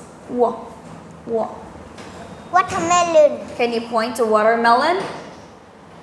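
A woman speaks calmly and clearly nearby.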